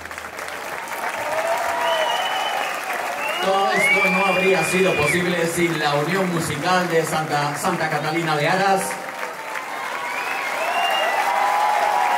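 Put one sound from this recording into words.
An audience and performers clap loudly in a large hall.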